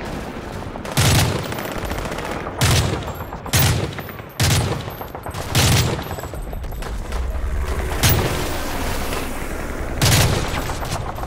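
A rifle fires single loud shots, one every second or two.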